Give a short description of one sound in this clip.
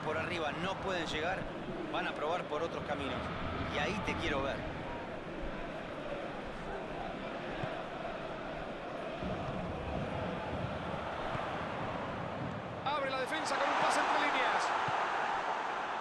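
A large crowd roars steadily in a stadium and swells louder near the end.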